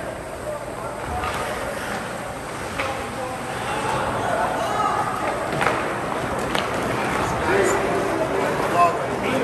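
Ice skates scrape and hiss across the ice in an echoing arena.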